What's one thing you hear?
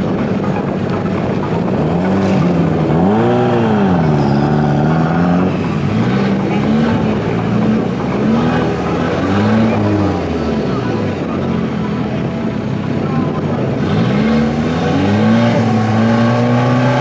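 A turbocharged four-cylinder hatchback revs its engine.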